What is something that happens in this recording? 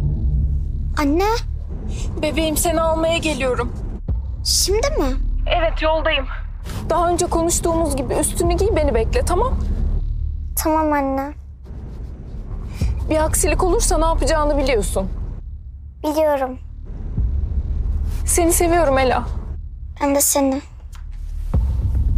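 A young woman speaks calmly on a phone.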